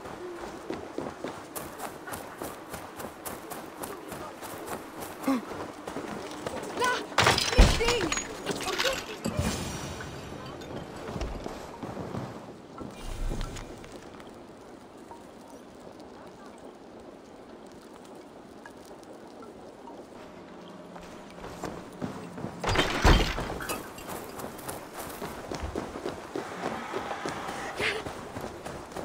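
Footsteps thud on the ground at a quick pace.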